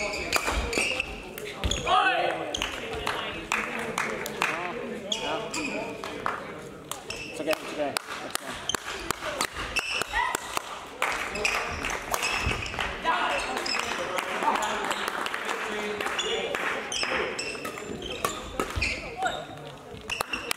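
Shuttlecocks are struck sharply with rackets in a large echoing hall.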